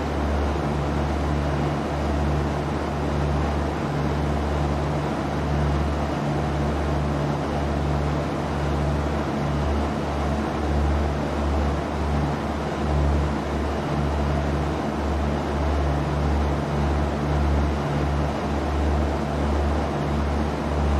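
A small propeller plane's engine drones steadily with a low hum.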